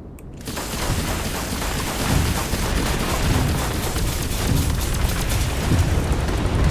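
Laser cannons fire in rapid bursts.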